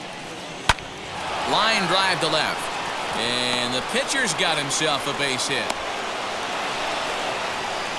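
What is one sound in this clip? A crowd cheers in a large stadium.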